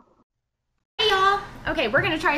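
Two young women shout a cheerful greeting close to the microphone.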